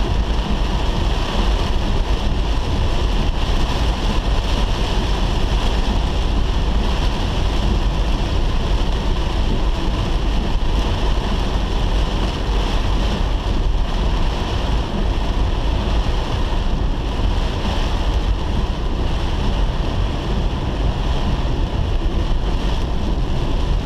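Windscreen wipers sweep back and forth.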